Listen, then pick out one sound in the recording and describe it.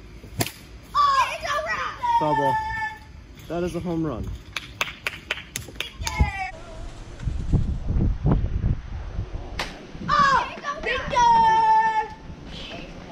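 Young boys shout and cheer excitedly outdoors.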